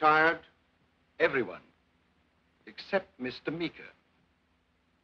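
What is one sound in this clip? A middle-aged man speaks in short, terse remarks.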